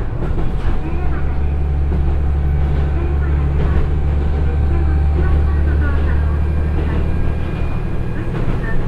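A train rumbles hollowly over a bridge.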